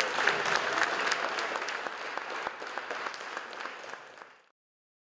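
An audience applauds in a room that echoes a little, and the clapping slowly fades.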